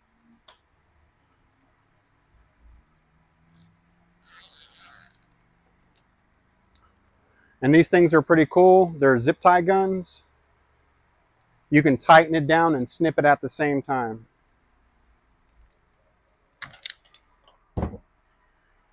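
Plastic parts click as they are handled.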